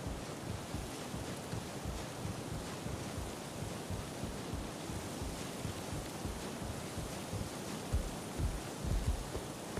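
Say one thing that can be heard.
Footsteps clank steadily on ladder rungs.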